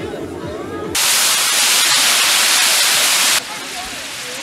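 Steam hisses loudly from a hot pan.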